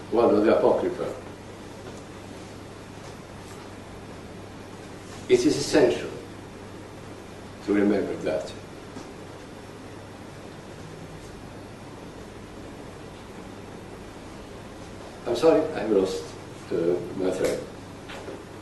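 An elderly man speaks slowly in short phrases, with long pauses, in a room with some echo.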